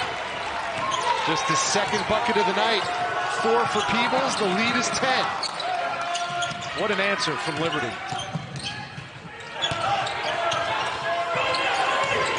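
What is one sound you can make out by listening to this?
A basketball thumps as it is dribbled on the court.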